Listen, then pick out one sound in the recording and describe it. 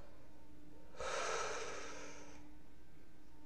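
A man exhales a long breath of smoke.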